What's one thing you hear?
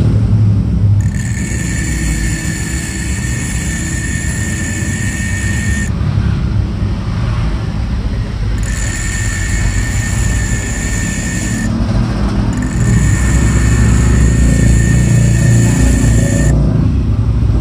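Metal grinds against a spinning abrasive wheel with a harsh, high whine, in several bursts.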